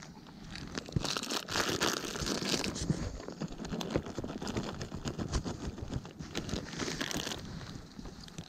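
A plastic snack bag crinkles in someone's hands.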